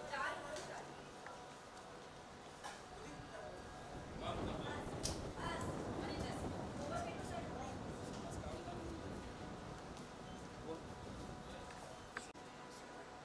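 A crowd of people chatter and call out nearby.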